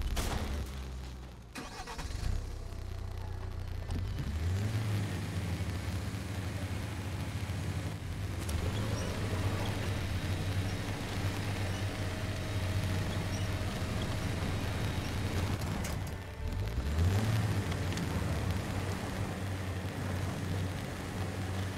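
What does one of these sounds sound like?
A truck engine rumbles and revs.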